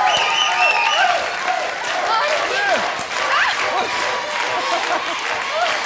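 A crowd cheers and whistles loudly in an echoing hall.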